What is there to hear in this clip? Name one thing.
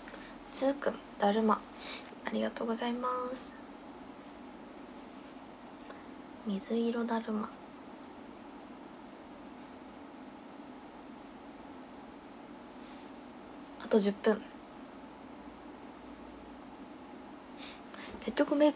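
A young woman speaks softly and close by, in short bursts with pauses.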